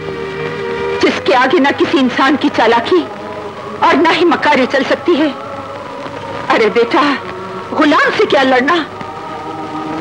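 A woman sings nearby.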